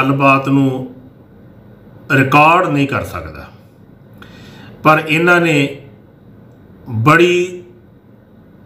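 An elderly man speaks calmly in short phrases into a microphone, with pauses between them.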